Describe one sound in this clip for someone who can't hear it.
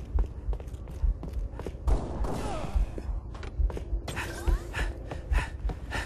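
Heavy footsteps thud at a steady, brisk pace on a hard floor.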